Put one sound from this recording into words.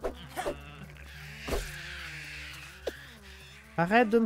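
A wet squelch bursts as a creature is splattered.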